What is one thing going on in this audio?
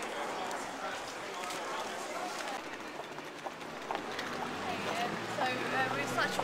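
Street noise with a crowd of voices murmurs around, outdoors.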